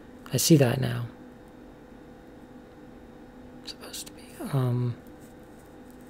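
A young woman speaks briefly close by, her voice falling in pitch.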